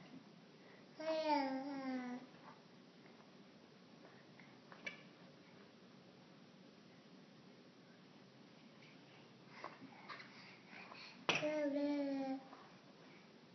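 A toddler squeals loudly nearby.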